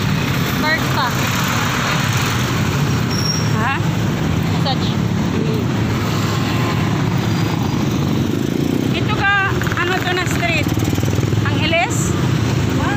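Motorcycle engines drone as they pass.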